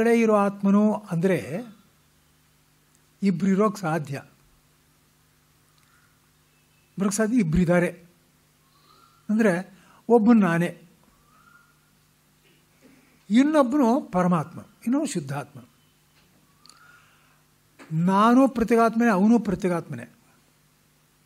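An elderly man speaks in short bursts, close to a microphone, with long pauses between them.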